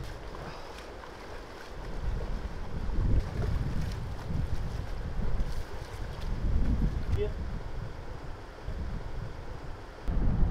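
Footsteps splash through a shallow stream.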